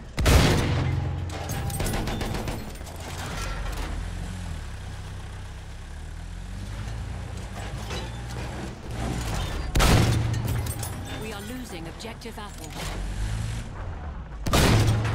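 A heavy gun fires with loud booms.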